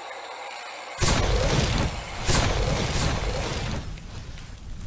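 Explosions boom and rumble as shells hit tanks.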